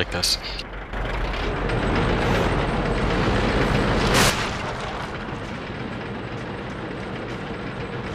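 Tank engines rumble and clank steadily.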